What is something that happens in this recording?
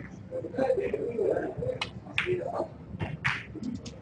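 A snooker cue taps a ball sharply.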